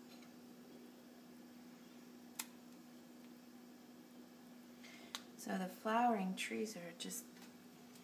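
A metal fork scrapes and clinks against a plate.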